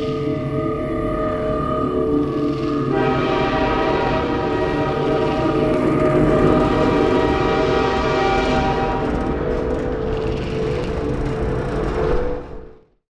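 A subway train rumbles steadily along its tracks.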